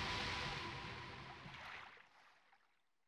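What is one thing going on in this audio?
Water rushes and bubbles, then fades away.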